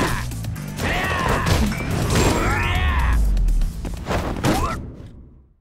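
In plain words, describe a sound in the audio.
Punches and kicks thud hard in a street fight.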